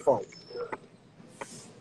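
A man sips loudly through a straw.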